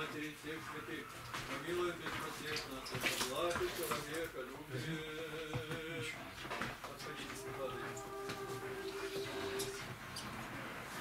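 A group of men sing together nearby.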